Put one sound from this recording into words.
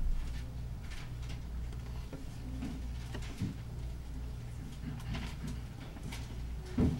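Book pages rustle as a man turns them.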